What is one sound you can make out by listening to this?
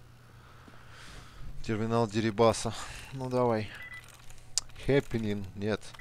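A computer terminal clicks and beeps as keys are pressed.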